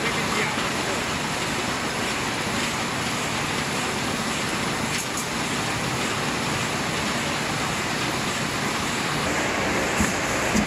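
Plastic sheets rustle and crinkle.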